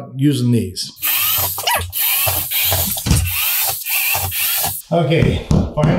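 A power drill whirs into a wall.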